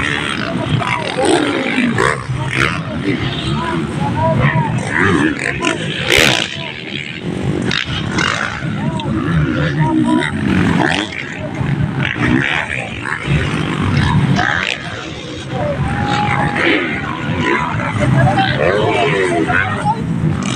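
Dirt bike engines rev and whine loudly.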